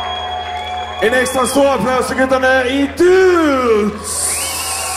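A young man shouts into a microphone through a loudspeaker system.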